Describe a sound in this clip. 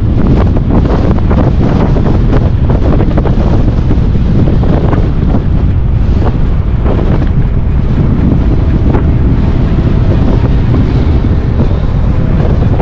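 Wind buffets loudly against the microphone while riding outdoors.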